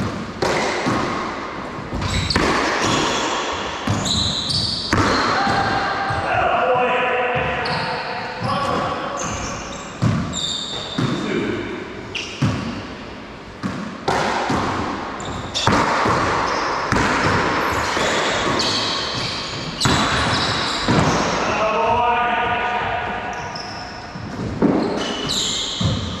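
A rubber ball smacks off walls and rackets with sharp, echoing bangs.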